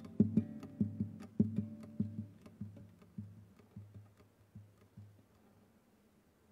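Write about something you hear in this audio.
A man plays a classical guitar, plucking notes that slow and fade away.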